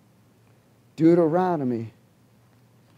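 A middle-aged man speaks briefly into a microphone, in a room with slight echo.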